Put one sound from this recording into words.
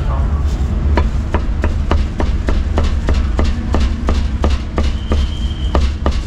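A cleaver chops rapidly and steadily on a wooden board.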